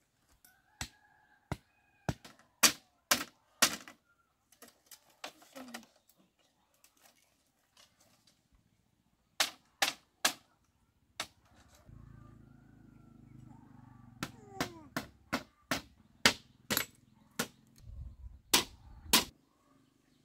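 A blade chops into bamboo with sharp knocks, again and again.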